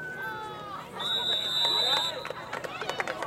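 A referee blows a whistle sharply.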